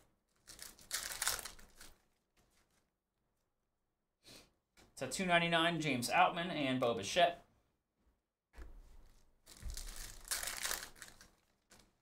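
Plastic card wrappers crinkle and tear.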